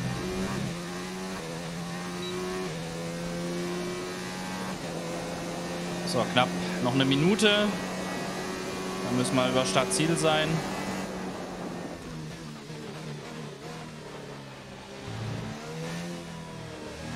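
A racing car engine roars at high revs and shifts through its gears.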